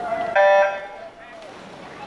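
Swimmers splash as they dive into the water.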